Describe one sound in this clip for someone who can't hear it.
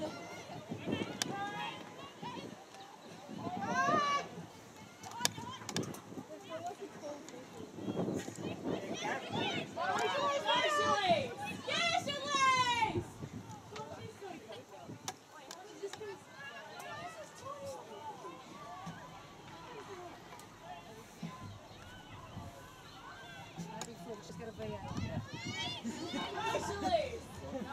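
Teenage girls shout calls to each other outdoors on an open field.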